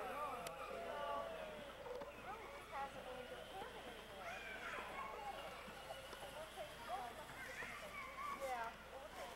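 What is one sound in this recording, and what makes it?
Women talk casually nearby.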